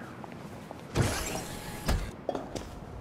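A heavy door slides open.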